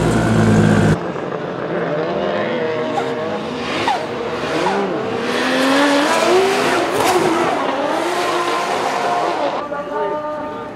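Racing car engines rev and roar loudly.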